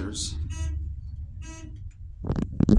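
An elevator chime beeps.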